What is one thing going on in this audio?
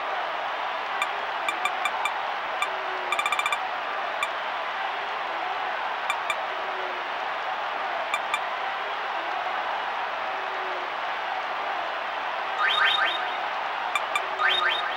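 Short electronic beeps sound as a menu cursor moves.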